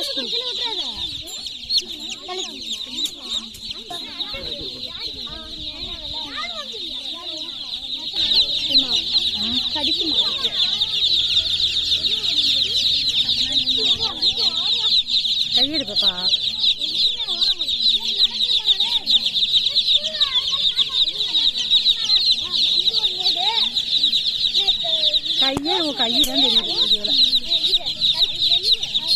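Many chicks cheep loudly and constantly, close by.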